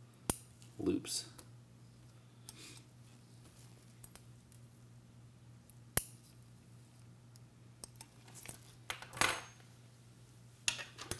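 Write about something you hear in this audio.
Metal instruments click and tap softly.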